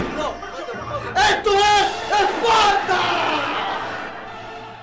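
A man shouts loudly close by.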